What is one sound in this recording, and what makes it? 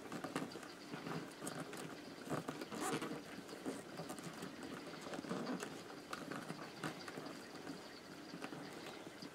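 Stiff paper strands rustle and scrape as they are woven by hand.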